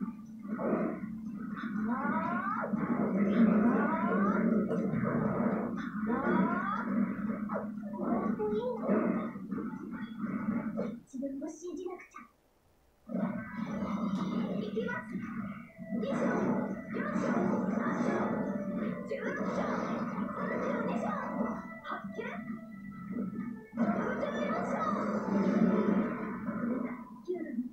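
Fighting game sound effects play through a small loudspeaker.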